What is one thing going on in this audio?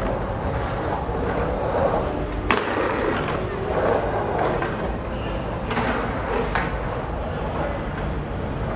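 Skateboard wheels roll and rumble across concrete.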